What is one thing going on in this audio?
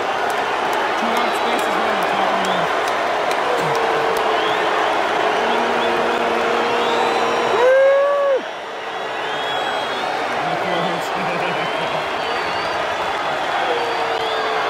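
A large stadium crowd murmurs and chatters throughout.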